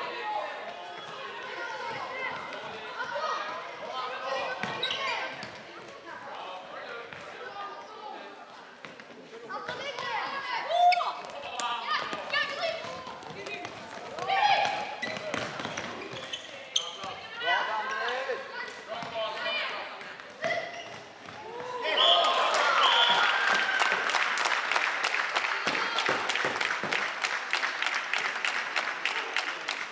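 Young boys shout and call out to each other across a large echoing hall.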